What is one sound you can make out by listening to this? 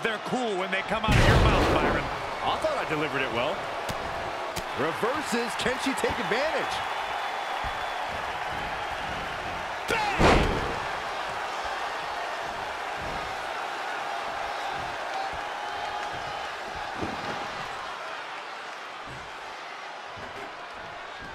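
A crowd cheers and murmurs steadily in a large arena.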